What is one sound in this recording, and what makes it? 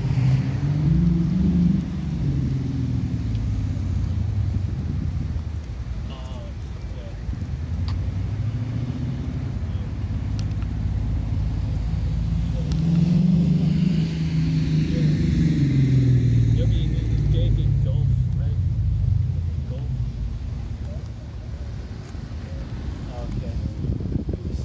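Wind rumbles and buffets in gusts.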